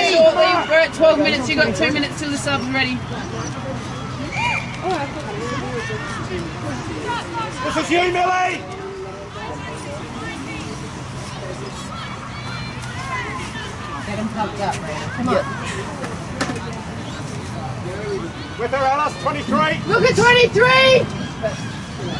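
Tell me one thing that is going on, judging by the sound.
Spectators close by shout and cheer loudly.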